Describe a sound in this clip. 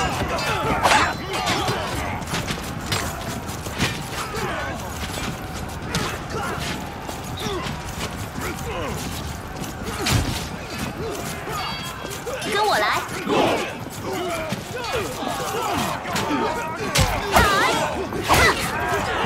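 Metal blades clash and clang repeatedly in a battle.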